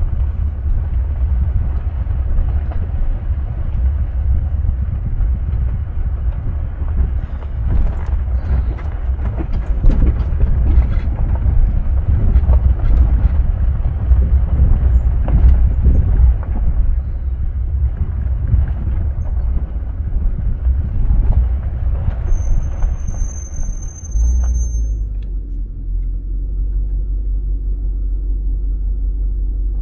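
A vehicle engine rumbles low and steady as it drives.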